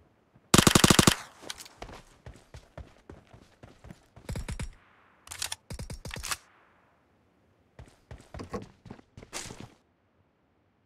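Footsteps thud on the ground.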